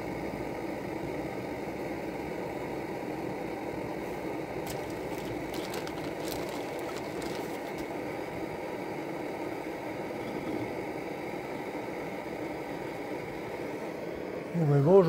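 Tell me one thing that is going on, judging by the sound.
A camping gas stove burns with a steady, low roar.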